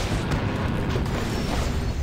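A lightning spell zaps and crackles.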